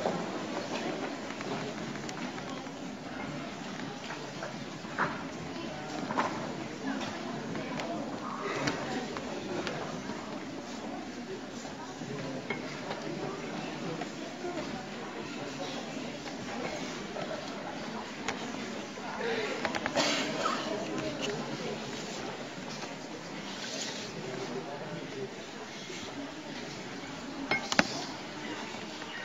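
A choir of girls sings together in a large hall.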